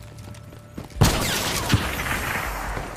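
A gun fires loud shots.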